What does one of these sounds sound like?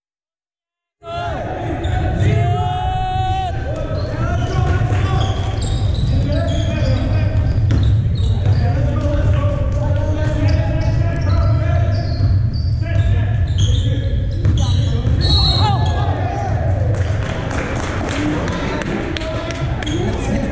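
Young people shout and call out across a large echoing hall.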